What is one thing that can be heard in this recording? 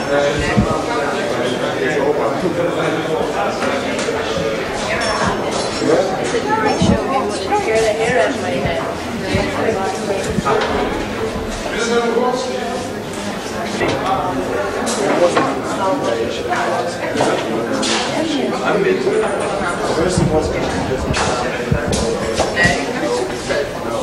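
Men and women chat and laugh nearby.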